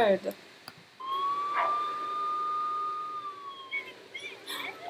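A police siren sounds nearby in a steady tone.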